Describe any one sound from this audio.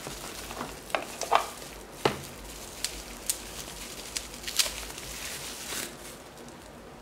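Plastic bubble wrap crinkles and rustles in someone's hands.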